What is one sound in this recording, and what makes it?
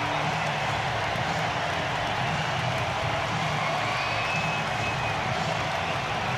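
A large stadium crowd cheers and roars steadily all around.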